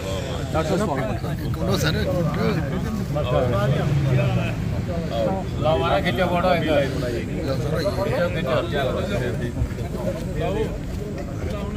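Several men talk over one another with animation, close by, outdoors.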